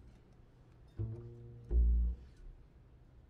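A saxophone plays a few short, loud notes.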